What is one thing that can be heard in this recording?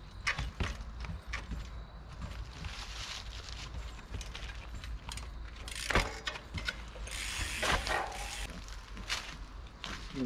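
Bike tyres knock and scrape over rocks.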